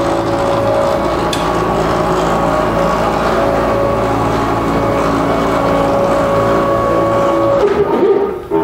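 A machine's motors hum and whine steadily as a gantry glides along its rails.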